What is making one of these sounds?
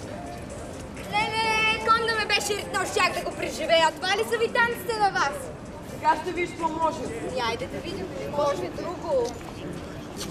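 A young woman sings loudly nearby.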